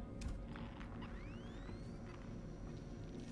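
A motion tracker pings with rising electronic tones.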